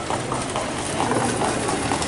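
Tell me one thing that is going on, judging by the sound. Horses' hooves clatter past on a dirt track.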